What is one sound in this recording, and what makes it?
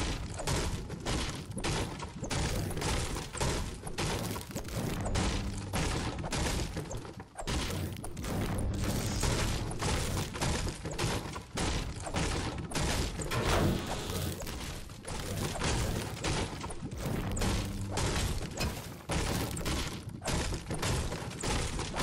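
A pickaxe strikes wood again and again with sharp knocks.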